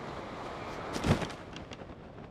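A sharp flapping snap sounds as a glider opens.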